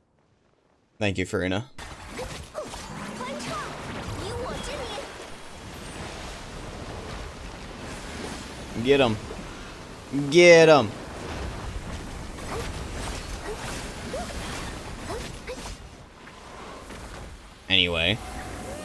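Magical blasts whoosh and crash during a fight.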